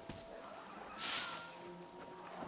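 A metal gun mechanism releases a short hiss of air.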